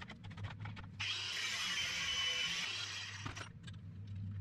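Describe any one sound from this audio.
An angle grinder whirs loudly.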